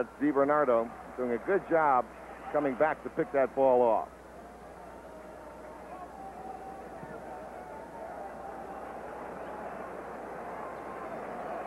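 A large crowd murmurs in a stadium, growing slowly louder.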